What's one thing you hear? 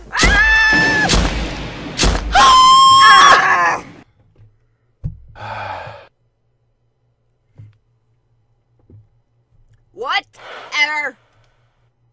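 A young man shouts and screams loudly into a microphone.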